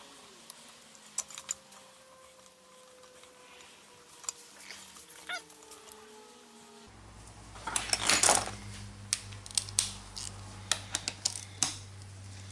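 Metal tool parts click and clank against a compressor pulley.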